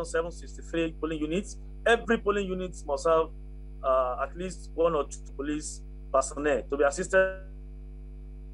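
A man speaks calmly and clearly, heard through a microphone over a remote link.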